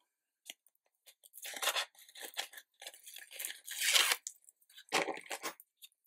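A sheet of card flexes and flaps as it is lifted.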